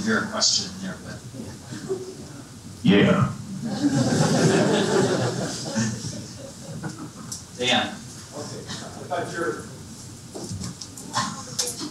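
A man speaks calmly into a microphone in a large, echoing hall.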